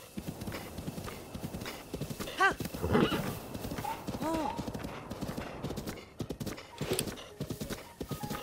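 A horse's hooves thud quickly and steadily as it gallops over grass.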